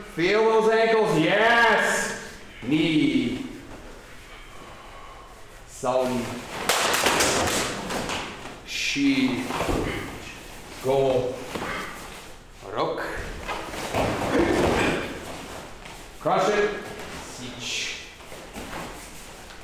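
A man loudly calls out short commands in an echoing room.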